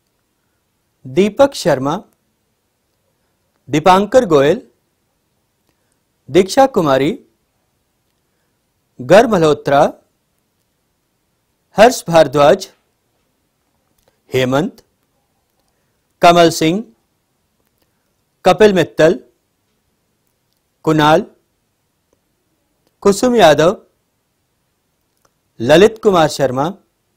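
A man reads out short names one at a time through a microphone, with pauses between them.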